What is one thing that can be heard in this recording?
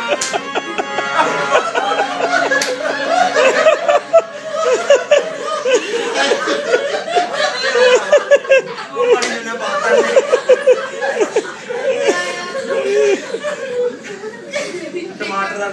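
A group of young men and women laugh loudly close by.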